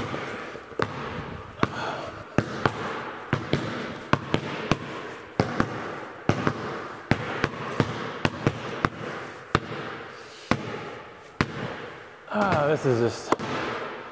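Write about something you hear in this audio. Basketballs bounce on a hard floor, echoing in a large hall.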